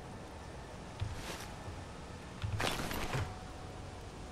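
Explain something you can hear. Heavy metal footsteps thud on the ground.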